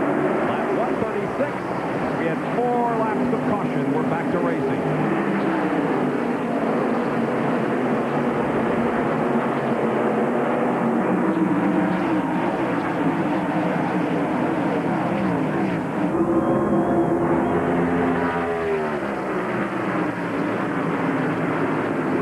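A pack of race cars roars past, engines whining and dropping in pitch as they pass.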